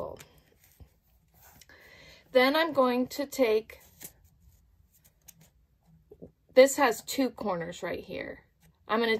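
Fingers press and slide softly on paper.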